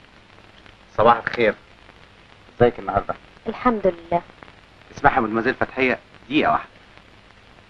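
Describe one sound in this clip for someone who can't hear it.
A man speaks, close by.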